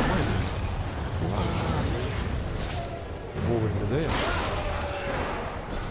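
Flames roar in a fiery blast.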